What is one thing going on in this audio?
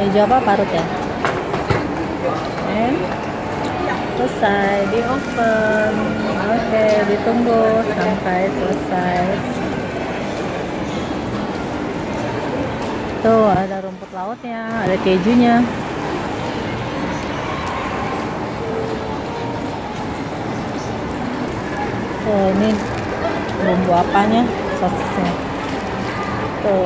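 A crowd murmurs and chatters in a busy, noisy room.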